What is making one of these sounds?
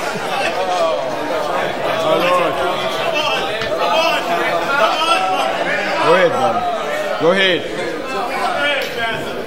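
A man preaches with animation through a microphone in a large hall.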